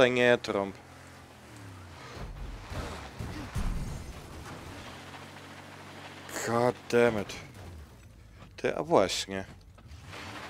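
A man speaks with animation into a close microphone.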